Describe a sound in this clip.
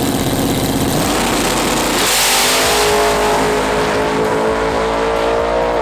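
A car engine roars to full power as the car launches and races away.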